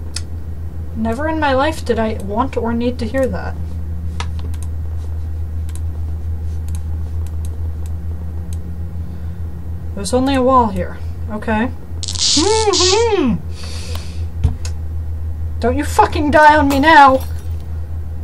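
A young person talks animatedly into a close microphone.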